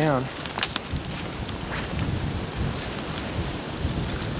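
Footsteps crunch on dry leaves and grass.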